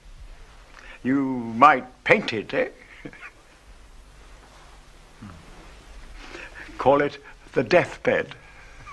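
An elderly man speaks calmly and deliberately nearby.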